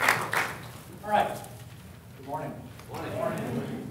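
A man speaks calmly through a loudspeaker in a large hall.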